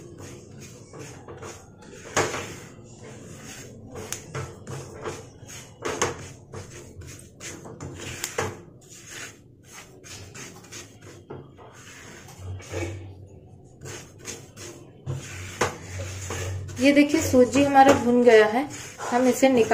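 A spatula scrapes and stirs dry grains in a pan.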